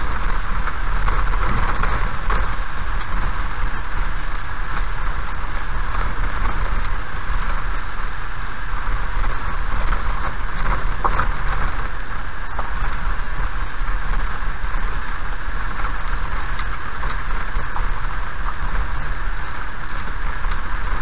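A car engine hums steadily from inside the vehicle.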